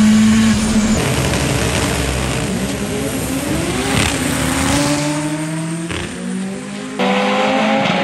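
A drag race car roars as it launches and speeds away.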